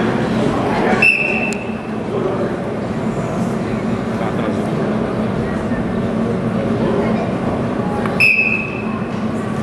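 A referee blows short, sharp blasts on a whistle.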